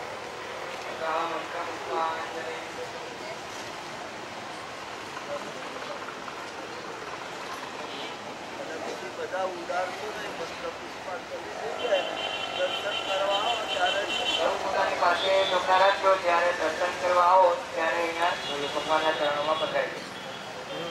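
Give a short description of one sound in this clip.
A young man chants into a microphone.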